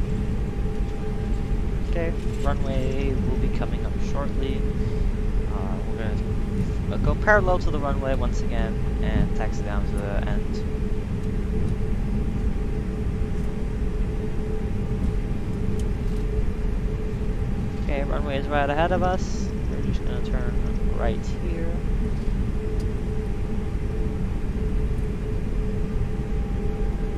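Jet engines hum steadily while an airliner taxis.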